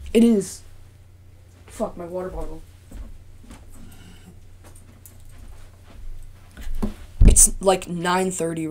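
A boy speaks close to the microphone with animation.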